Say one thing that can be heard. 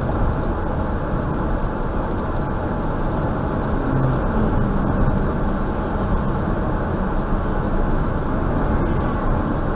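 Tyres roar steadily on a road.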